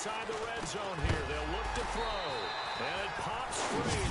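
Football players' pads crash together in a tackle.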